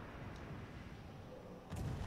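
Heavy naval guns fire with deep booms.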